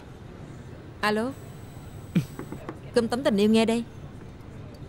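A woman speaks on a phone.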